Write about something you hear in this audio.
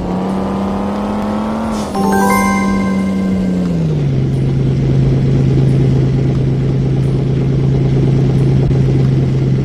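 A car engine hums steadily, its pitch shifting then settling low.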